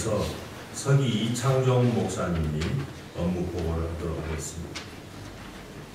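A middle-aged man speaks calmly through a microphone in an echoing hall.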